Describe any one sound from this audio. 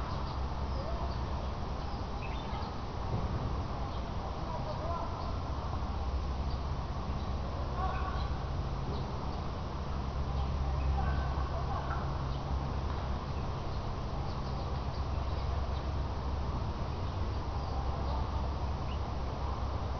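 Distant men shout faintly.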